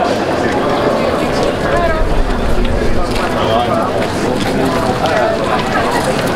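Footsteps patter on paving stones.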